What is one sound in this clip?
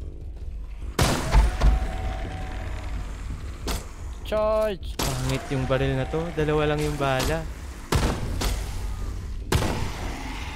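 Gunshots bang loudly.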